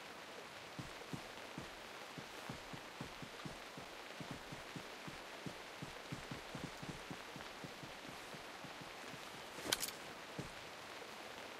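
Footsteps rustle softly through grass.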